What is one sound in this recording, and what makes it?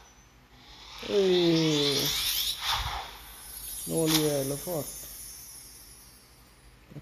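A bright, sparkling game chime rings out and slowly fades.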